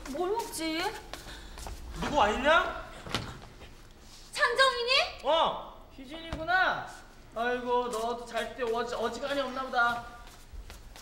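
A young woman calls out loudly indoors.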